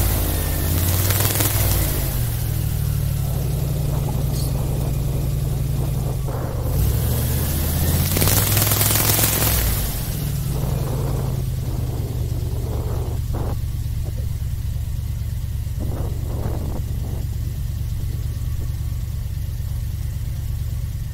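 Wind rushes past loudly, outdoors in the open.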